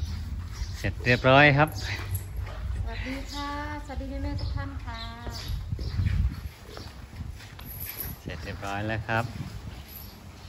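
A woman talks nearby with animation.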